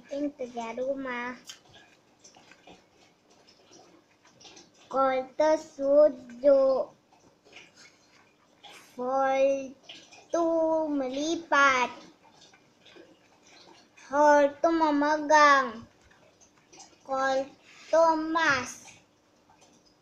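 A young boy reads words aloud close by, slowly and clearly.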